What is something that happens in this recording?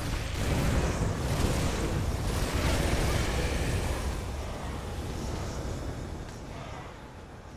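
Fiery explosions roar and crackle loudly, then fade.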